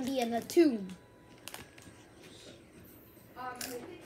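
A boy crunches on chips.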